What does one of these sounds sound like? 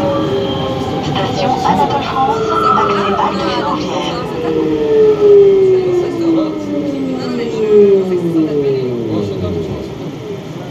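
Train wheels squeal on the rails with falling pitch as the train slows into a station.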